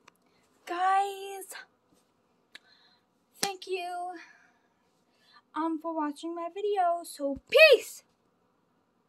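A young girl talks playfully and close up, in a high, sing-song voice.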